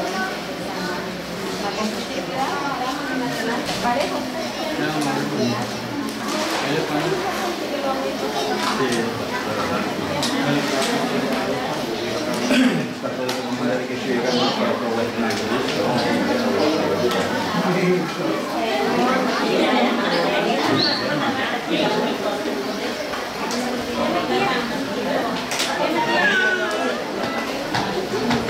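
A woman speaks calmly to a small group nearby.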